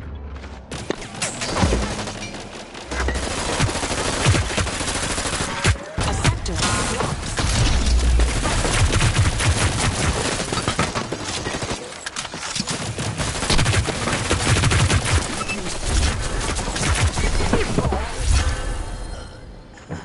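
Rapid gunfire rattles in short bursts.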